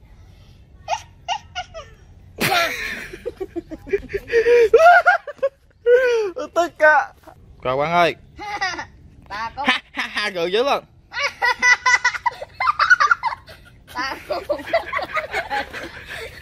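Young boys talk and laugh with animation close by.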